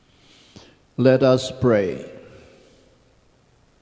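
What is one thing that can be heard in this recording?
An elderly man chants through a microphone in a reverberant hall.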